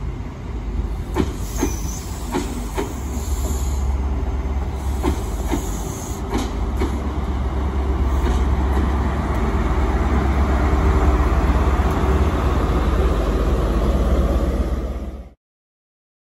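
A diesel train engine rumbles loudly as the train rolls past.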